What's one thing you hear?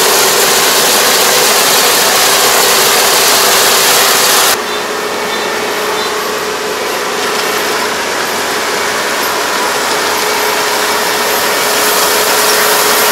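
A combine harvester engine drones steadily nearby.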